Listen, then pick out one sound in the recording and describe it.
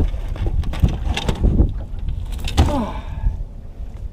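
A fish splashes and thrashes in a landing net.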